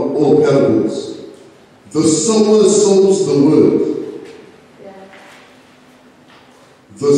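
A man preaches with emphasis into a microphone, his voice echoing in a hall.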